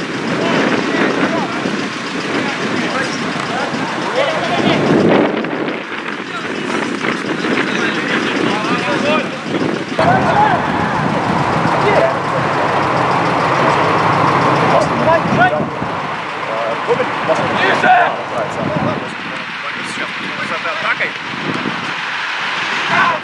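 Young men shout to each other outdoors across an open pitch.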